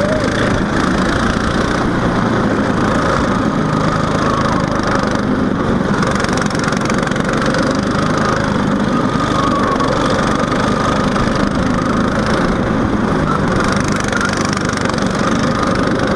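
A go-kart engine buzzes loudly up close, rising and falling as the kart speeds around bends.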